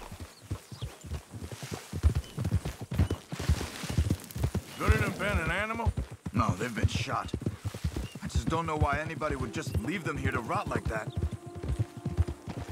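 Horses' hooves thud steadily on grassy ground.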